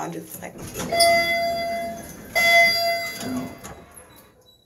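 An elevator chime rings twice.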